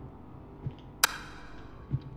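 A light switch clicks.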